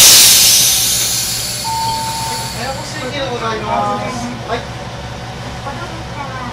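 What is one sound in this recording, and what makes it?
A train engine idles with a low, steady hum.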